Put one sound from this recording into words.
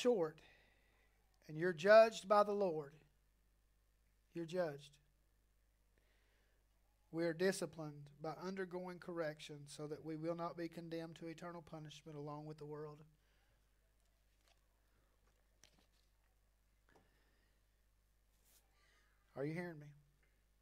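A man speaks calmly through a microphone, pausing often.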